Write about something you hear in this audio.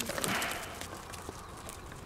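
A dog runs across loose gravel.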